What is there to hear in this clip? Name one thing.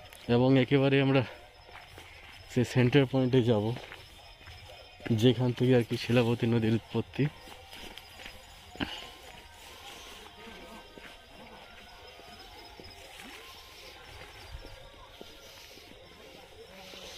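Footsteps crunch softly on a dirt path.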